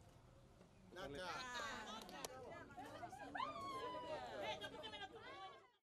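Children chatter and laugh faintly outdoors.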